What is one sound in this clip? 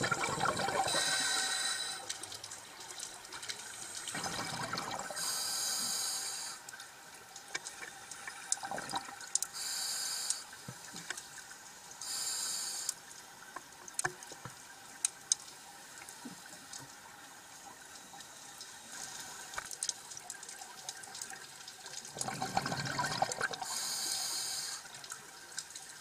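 Exhaled air bubbles gurgle and rush out in bursts.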